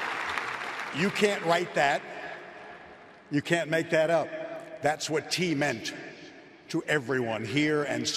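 An elderly man speaks with animation through a microphone in a large echoing hall.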